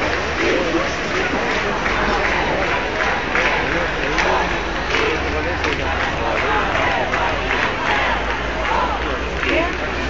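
A large crowd chants and shouts loudly outdoors.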